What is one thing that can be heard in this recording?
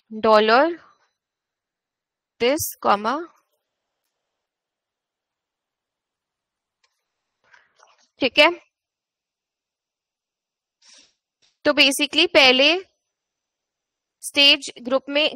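A young woman speaks calmly into a microphone, in short phrases with pauses.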